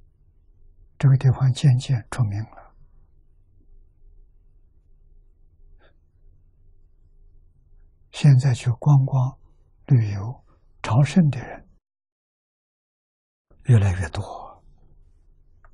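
An elderly man speaks calmly and slowly into a microphone, with long pauses.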